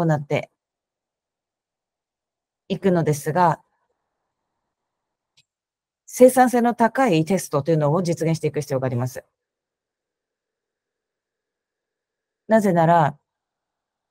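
A young woman speaks calmly in short bursts through an online call.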